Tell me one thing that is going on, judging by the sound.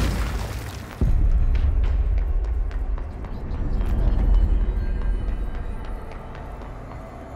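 A low wind-like rumble drones and then fades.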